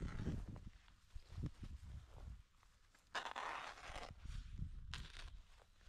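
A plastic sheet rustles as it is unrolled on grass.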